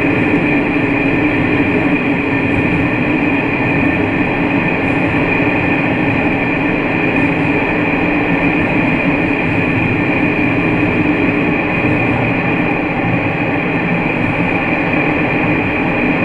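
A diesel railcar's engine drones under way, echoing inside a tunnel.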